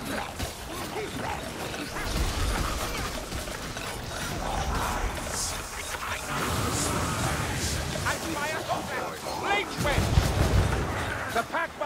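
Blades clash and strike against growling creatures in a close fight.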